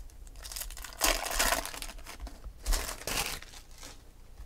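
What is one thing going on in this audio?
A foil wrapper crinkles and tears as hands rip it open.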